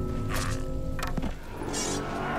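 A large gong is struck and rings out.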